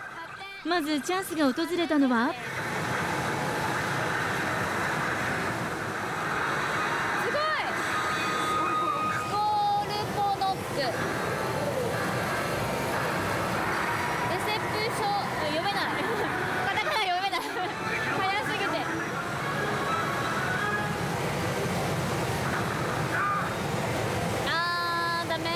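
A pachinko machine plays loud electronic music and sound effects.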